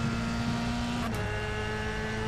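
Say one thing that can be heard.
A racing car engine shifts up a gear with a quick crack.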